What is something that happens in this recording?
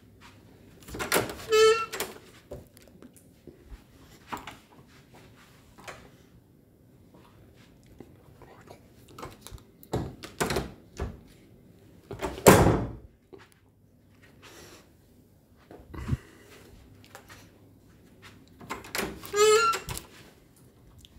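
A door creaks as it swings open.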